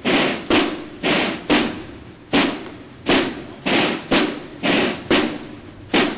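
A soldier's boots stamp on pavement as he marches.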